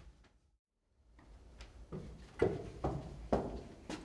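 Footsteps climb a wooden staircase.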